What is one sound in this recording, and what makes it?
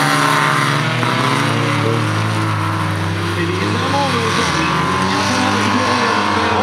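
Race car engines drone in the distance.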